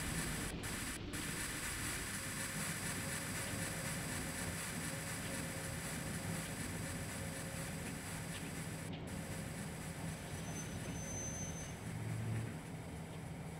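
A locomotive's engine hums and rumbles steadily.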